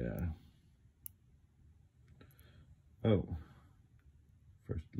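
Small metal parts click and tap softly.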